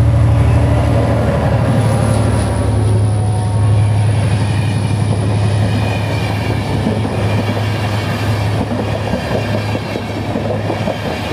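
Train wheels clatter and rattle on the rails as carriages pass close by.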